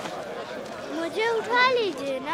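A woman cries out loudly.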